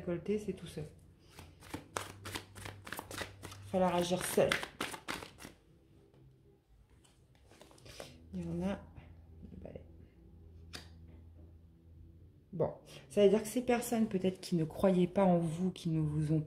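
Cards are shuffled and set down with light slaps.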